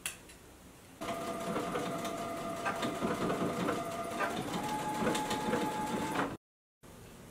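A sewing machine hums and whirs steadily.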